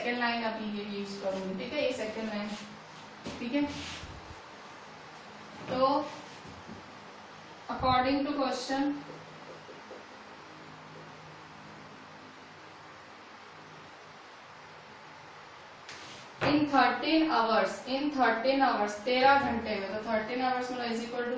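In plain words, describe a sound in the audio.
A woman speaks calmly and clearly, close by, explaining at length.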